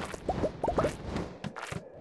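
Fireballs whoosh from a game weapon.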